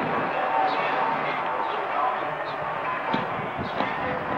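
A large wooden lid thuds onto the grass.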